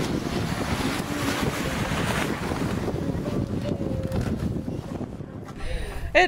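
A sail flaps and rustles in the wind.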